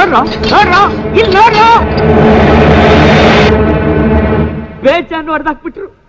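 A man shouts loudly and angrily.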